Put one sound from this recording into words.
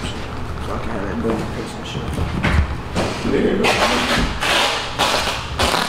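Velcro straps rip open and press shut.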